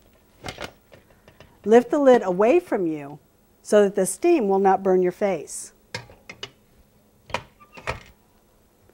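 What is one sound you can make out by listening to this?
A metal lid clanks as it is lifted off a pot and set down.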